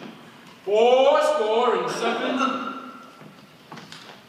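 A man sings out loudly from a stage in a large echoing hall.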